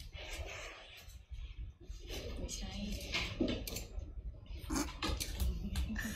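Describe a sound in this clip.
Young women talk playfully through a small speaker.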